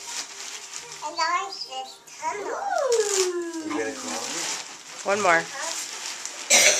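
A small child speaks in a high voice.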